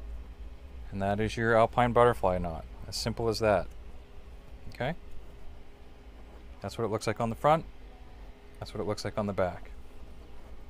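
A man talks calmly and close by, explaining.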